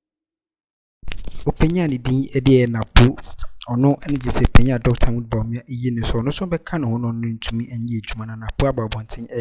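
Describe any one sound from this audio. A young man speaks calmly and close into a headset microphone.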